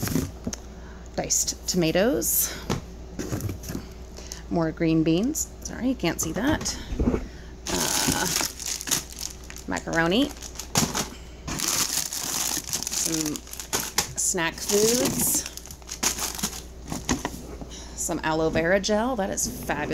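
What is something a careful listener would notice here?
Cans and jars clink and knock as they are moved about.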